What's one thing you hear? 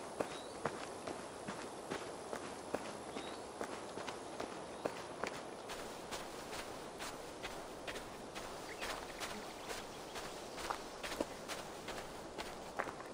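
Footsteps crunch steadily through grass and undergrowth.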